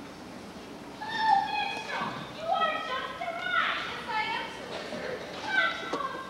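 A young performer sings loudly from a stage, heard from a distance in a large echoing hall.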